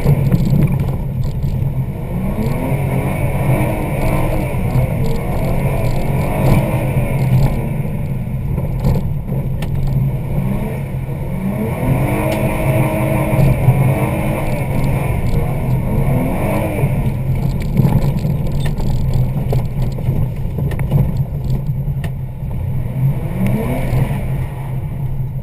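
A car engine drones and revs up and down.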